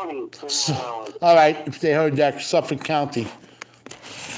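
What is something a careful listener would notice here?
A middle-aged man speaks with animation close to a phone microphone.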